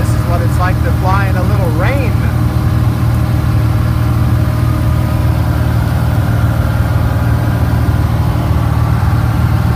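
A small aircraft engine drones loudly and steadily.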